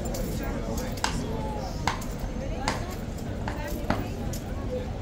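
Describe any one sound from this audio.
A horse's hooves clop and scrape on stone.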